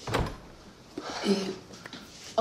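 A man speaks tensely close by.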